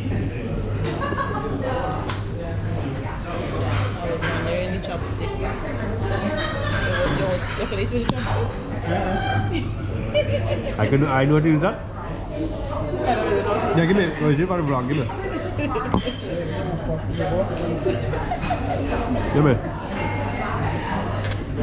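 A woman talks and laughs cheerfully nearby.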